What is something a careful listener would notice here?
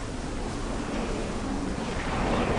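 Wind rushes past while gliding through the air.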